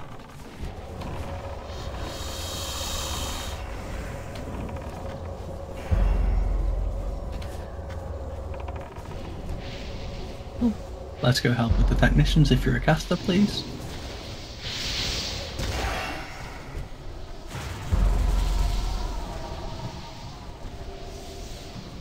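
Fire spells roar and crackle in a game battle.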